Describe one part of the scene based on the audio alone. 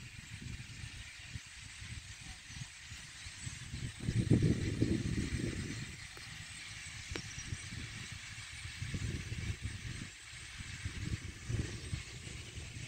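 Wind blows across open ground and buffets the microphone in gusts.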